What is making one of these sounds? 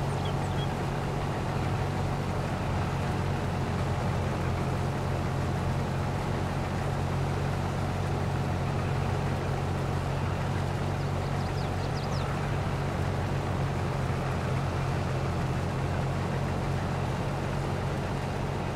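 A combine harvester's engine drones steadily.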